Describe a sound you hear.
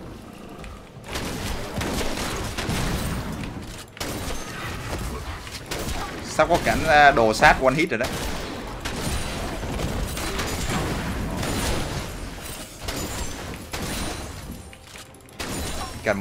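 Fighting sound effects from a video game clash and crackle.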